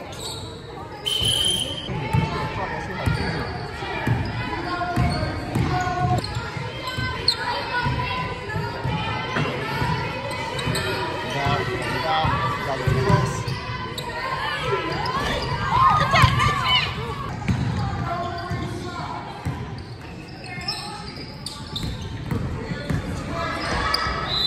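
Young girls call out and chatter during play.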